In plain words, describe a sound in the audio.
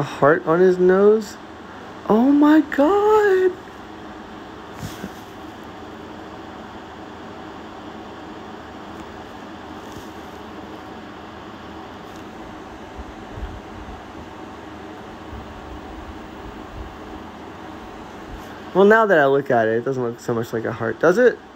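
A cat purrs softly close by.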